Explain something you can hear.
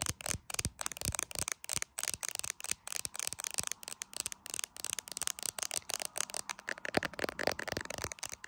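Long fingernails tap and click rapidly on a hard phone case, close up.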